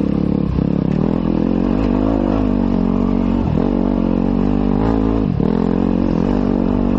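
Tyres crunch over loose rocks.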